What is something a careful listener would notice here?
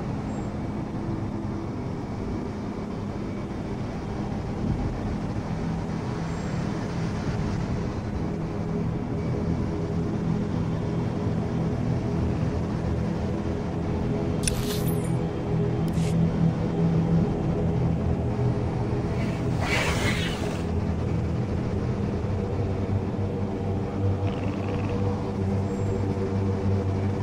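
A hovering bike's engine hums steadily.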